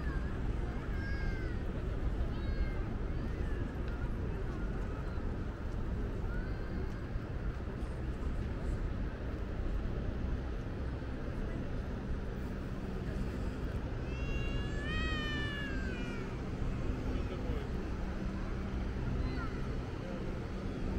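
Wind blows steadily outdoors across an open space.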